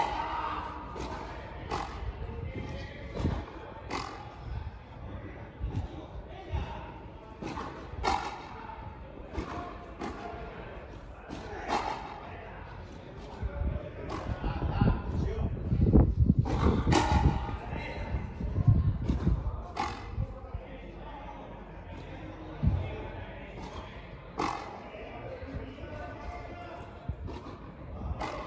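Rackets strike a ball again and again, with sharp smacks echoing in a large open court.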